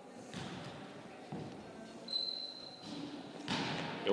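A body lands with a soft thud on a gym mat.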